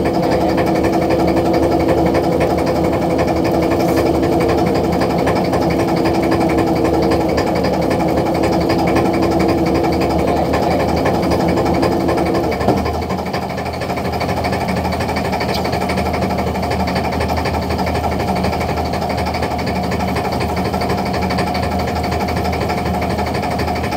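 A net hauler whirs, its pitch dropping partway through.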